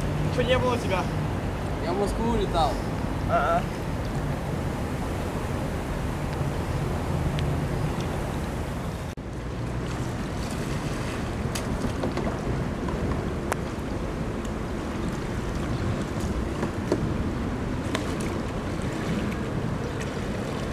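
Kayak paddles splash in water close by.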